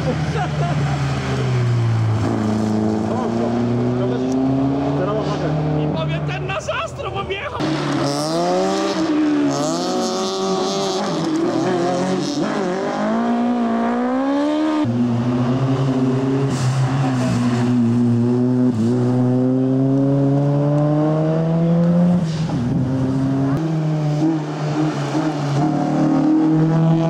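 Rally car engines roar loudly, revving up and down through the gears as the cars race past.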